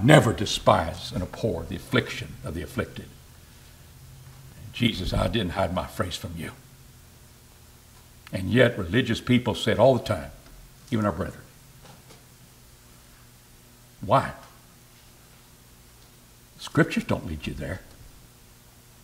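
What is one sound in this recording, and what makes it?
An elderly man speaks calmly into a microphone, pausing between phrases, with a slight room echo.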